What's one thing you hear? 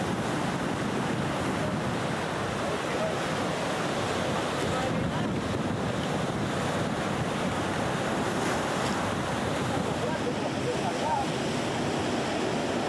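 Waves crash and roar against rocks nearby.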